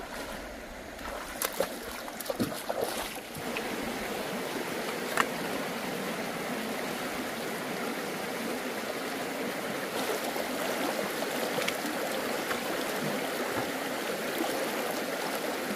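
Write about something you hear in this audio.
A shallow stream ripples and gurgles over rocks.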